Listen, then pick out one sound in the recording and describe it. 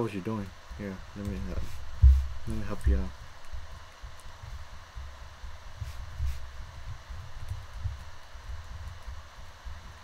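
Soft footsteps thud on grass.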